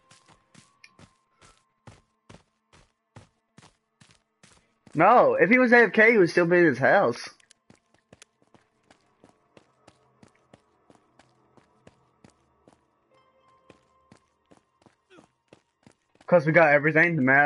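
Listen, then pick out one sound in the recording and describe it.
Footsteps run quickly and steadily over the ground.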